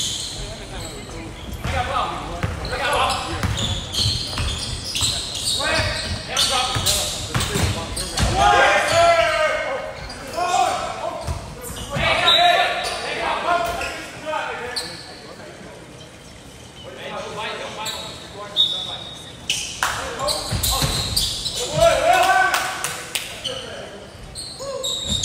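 Players shout and call out to one another in a large echoing gym.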